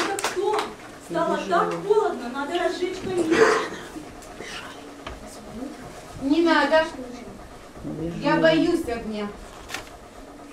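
A woman speaks with animation in a room.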